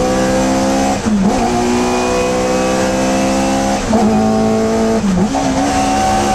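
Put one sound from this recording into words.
A racing car's engine note dips briefly as the gears are shifted.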